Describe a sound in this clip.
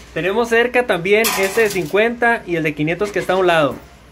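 A coin drops and clatters onto a pile of coins.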